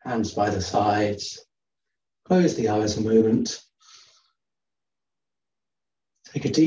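A man speaks calmly through a microphone on an online call, in short phrases with pauses.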